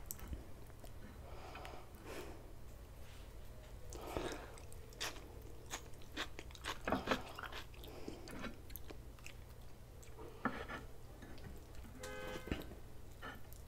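Crunchy food crackles as fingers pick it from a bowl.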